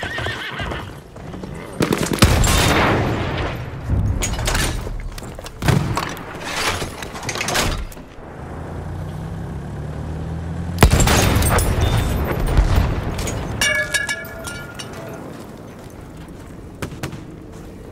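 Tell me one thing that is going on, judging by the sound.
Explosions boom loudly and rumble.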